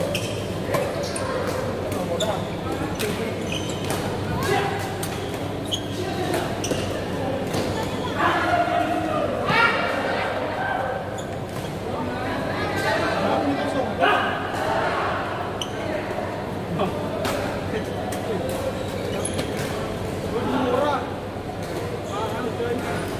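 Shuttlecocks are struck sharply with rackets, over and over.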